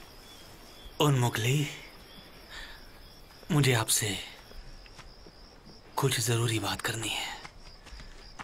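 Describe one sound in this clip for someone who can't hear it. A man speaks in short, low phrases close by.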